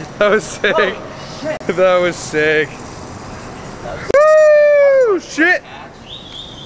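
Young men shout and laugh nearby.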